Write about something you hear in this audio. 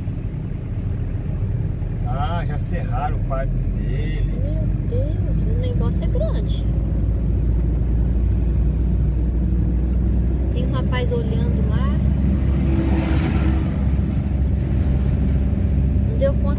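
A vehicle's engine rumbles steadily from inside the cab.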